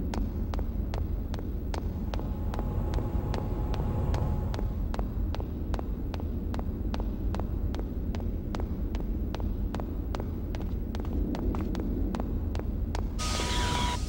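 Quick, even footsteps run across a hard metal floor.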